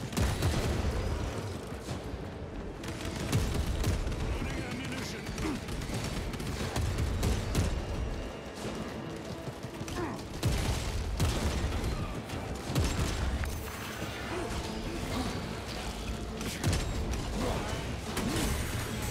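Gunfire and flamer bursts blast in rapid volleys.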